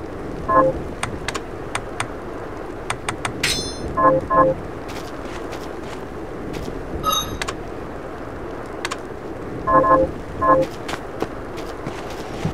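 Short electronic menu blips and clicks sound as options are selected.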